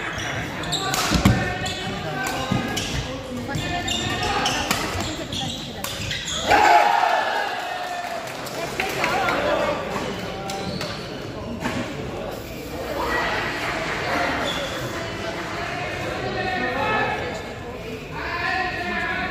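A shuttlecock is struck sharply by rackets again and again.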